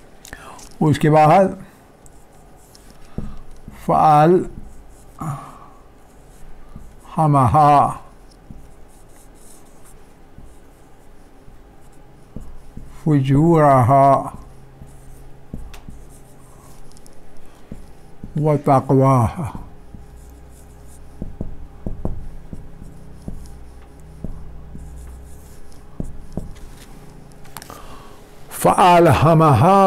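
A man speaks calmly in short phrases with long pauses, close by.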